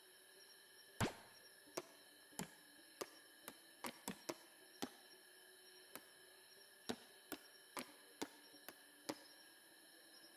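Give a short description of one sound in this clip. Menu selection clicks tick one after another.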